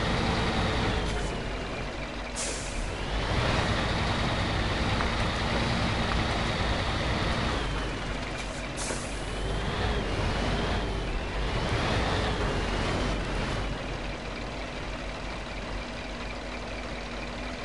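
A heavy truck engine rumbles and revs as it drives.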